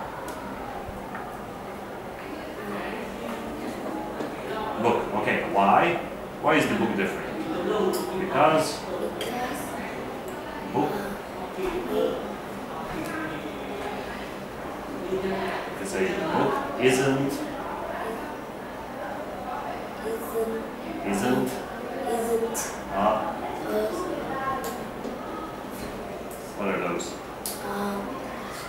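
A boy answers in a quiet voice.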